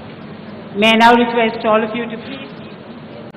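A woman speaks briefly through a loudspeaker.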